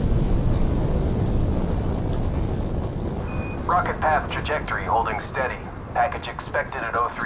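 Footsteps crunch steadily on packed snow.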